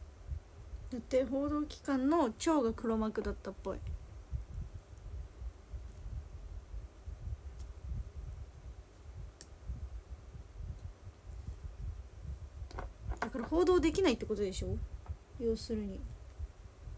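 A young woman speaks softly and casually, close by.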